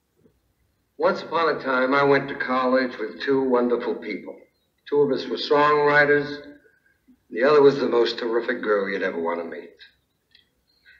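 A man sings into a microphone with feeling.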